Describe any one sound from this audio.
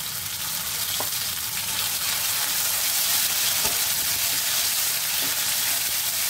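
A wooden spatula scrapes against the pan.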